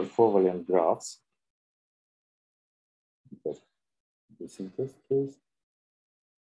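A man speaks calmly through a microphone on an online call, pausing between phrases.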